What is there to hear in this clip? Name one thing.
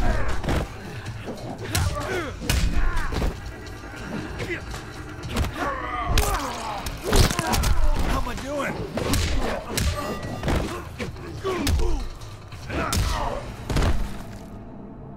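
Punches and kicks land with heavy, rapid thuds.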